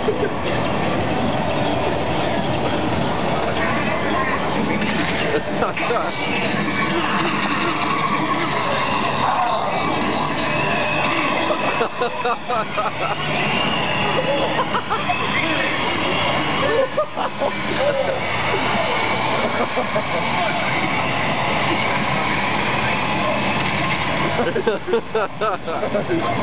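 Arcade machines beep and chime all around.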